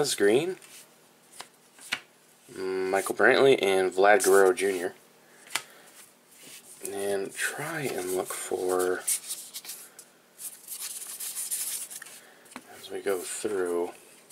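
Trading cards rustle and slide against each other as they are shuffled by hand.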